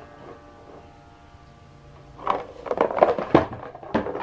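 A cat rustles tissue paper in a box.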